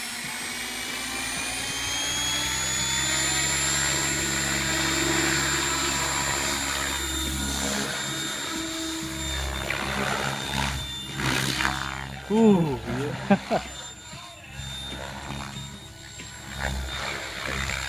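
A model helicopter's rotor blades whir and buzz loudly as it lifts off and flies.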